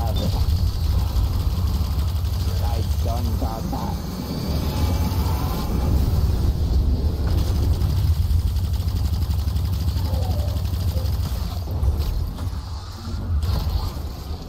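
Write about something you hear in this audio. Gunfire and explosions from a video game roar steadily.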